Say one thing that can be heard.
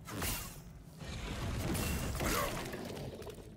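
A fiery explosion roars and crackles.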